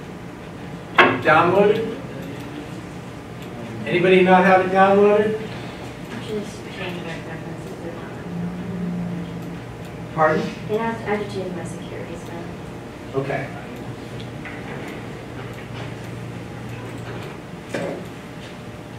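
A middle-aged man lectures in a large room, speaking with animation.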